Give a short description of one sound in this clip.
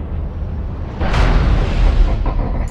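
A heavy object crashes down with a loud boom.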